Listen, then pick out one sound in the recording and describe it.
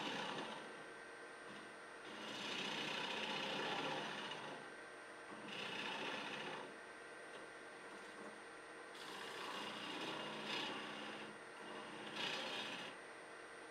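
A gouge scrapes and hisses against spinning wood in bursts.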